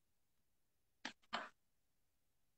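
A phone knocks twice as it is handled close by.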